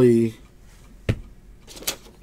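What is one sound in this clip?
A hand taps down on a table.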